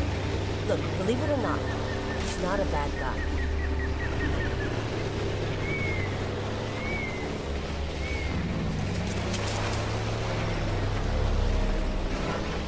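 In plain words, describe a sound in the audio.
A boat engine hums steadily as the boat moves over water.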